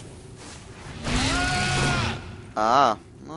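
A fiery blast roars and whooshes.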